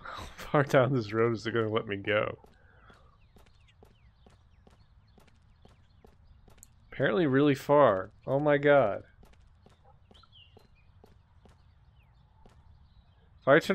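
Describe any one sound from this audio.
Footsteps run quickly over a rough dirt path.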